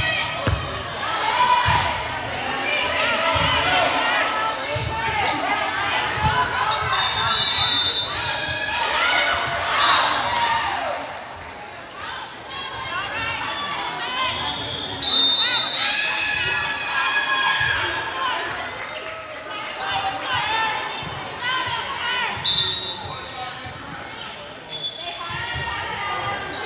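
A volleyball thuds off players' arms and hands.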